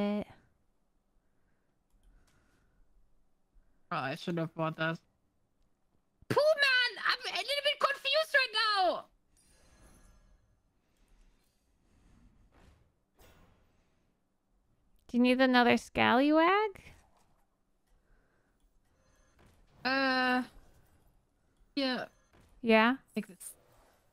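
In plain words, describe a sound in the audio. A young woman talks into a microphone in short bursts.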